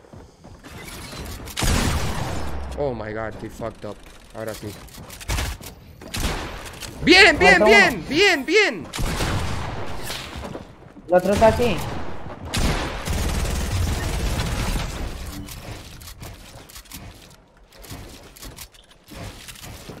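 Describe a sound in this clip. A game character's pickaxe strikes wooden walls with dull thuds.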